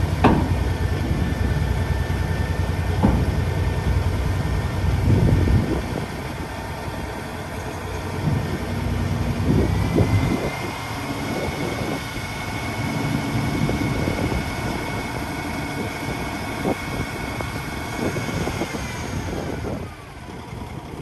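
A hydraulic pump whines steadily as a dump truck's bed slowly lowers.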